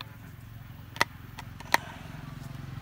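Plastic parts click and tap as they are handled.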